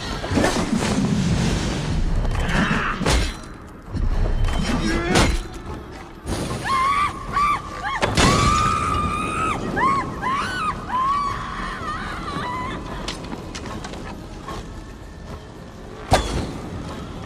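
Blades clash and strike with heavy thuds.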